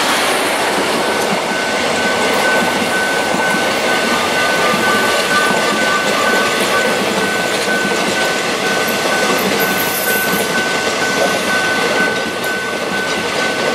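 A railway crossing bell rings steadily in the distance.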